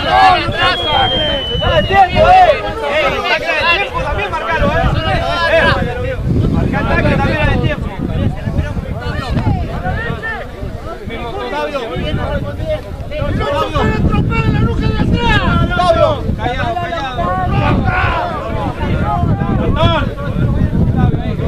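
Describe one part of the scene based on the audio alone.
Young men shout and call to each other across an open field outdoors.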